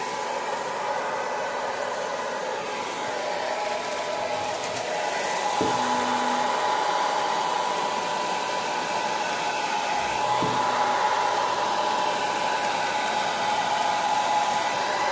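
A hair dryer blows with a steady, loud whirring hum.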